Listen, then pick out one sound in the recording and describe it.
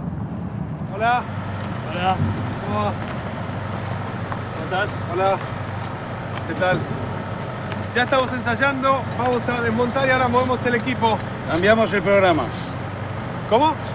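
Men talk with one another nearby.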